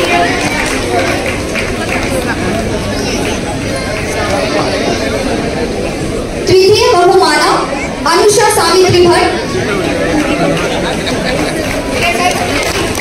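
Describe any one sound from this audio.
A crowd of men and women murmur and chatter nearby.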